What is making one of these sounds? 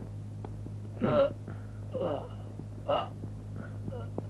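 A man speaks in short, strained bursts.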